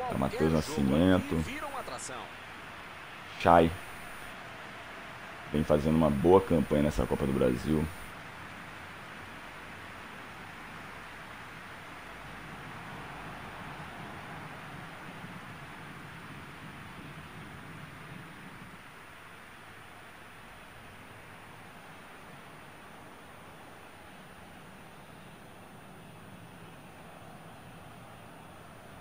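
Pyrotechnic flares hiss and roar steadily.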